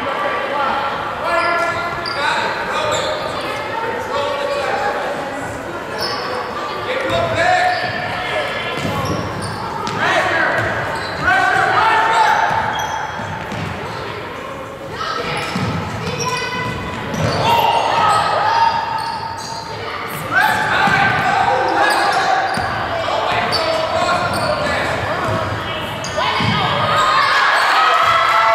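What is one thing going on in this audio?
Spectators talk and cheer in a large echoing gym.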